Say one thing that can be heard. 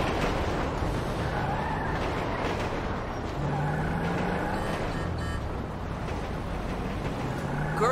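A car engine starts and revs as the car pulls away.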